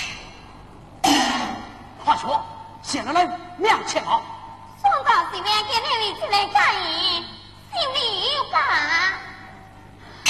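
A man speaks in a sung, drawn-out stage voice.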